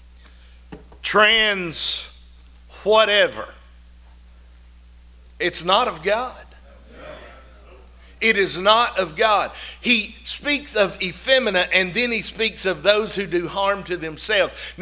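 A middle-aged man preaches with animation through a microphone, in bursts with pauses.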